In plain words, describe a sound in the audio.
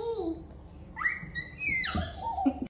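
A small child squeals in a high voice.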